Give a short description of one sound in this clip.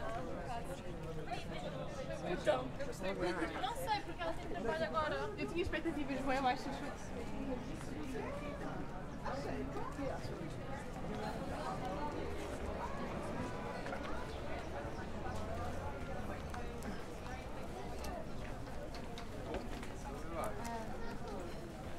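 A crowd of men and women chatters nearby, outdoors.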